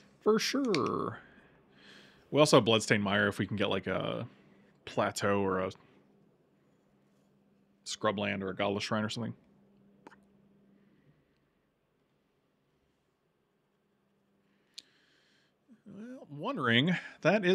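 A middle-aged man talks with animation into a close microphone, pausing now and then.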